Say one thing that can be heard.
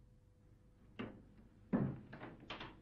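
A door handle clicks as a door opens.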